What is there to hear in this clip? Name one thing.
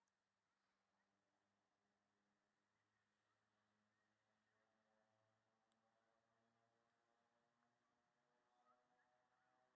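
Jet engines drone far off overhead.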